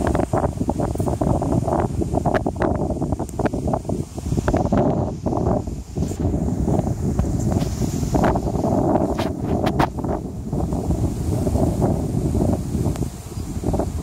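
Many bees buzz steadily.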